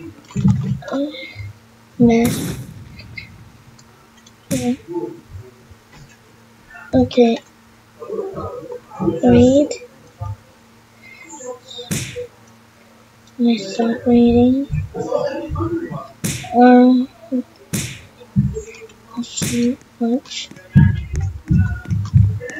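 A boy talks with animation close to a microphone.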